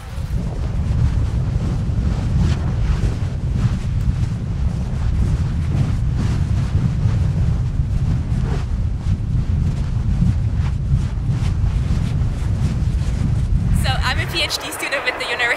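Lava fountains roar with a deep, steady rumble.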